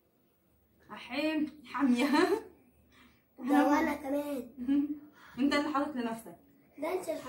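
A young boy talks and laughs close by.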